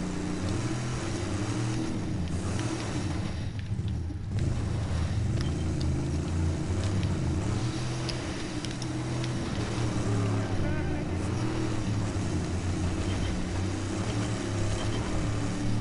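Tyres crunch and rumble over rough ground.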